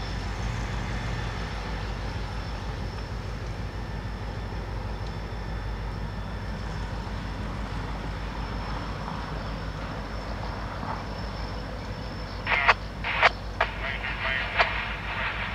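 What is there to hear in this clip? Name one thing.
An EMD SD40-2 diesel locomotive rumbles as it slowly approaches.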